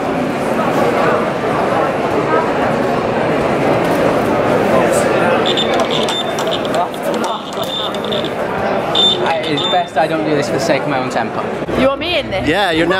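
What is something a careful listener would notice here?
A crowd chatters throughout a large, busy hall.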